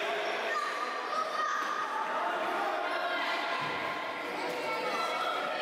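Children shout in a large echoing hall.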